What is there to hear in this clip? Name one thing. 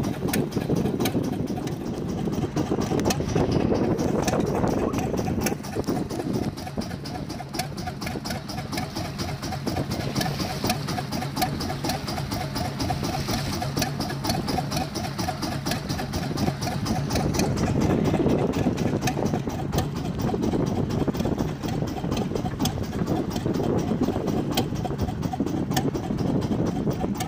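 A fishing line rattles and clicks as it is hauled in by hand.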